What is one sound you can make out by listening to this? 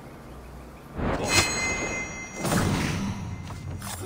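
A sword slashes and strikes an enemy with sharp clangs.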